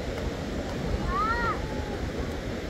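A child gives a high shout nearby.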